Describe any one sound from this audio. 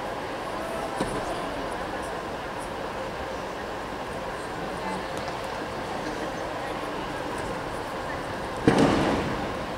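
A gymnast's feet thud onto a wooden balance beam.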